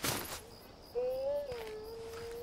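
A bright electronic chime rings out and holds for a moment.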